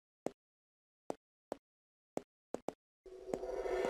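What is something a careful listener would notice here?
Light footsteps tap on a hard floor.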